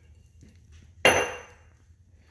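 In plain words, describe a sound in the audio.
A metal spoon clinks against a metal pot.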